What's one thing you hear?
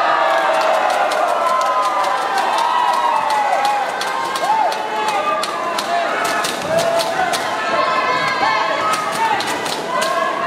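Spectators clap and bang noisemakers rapidly.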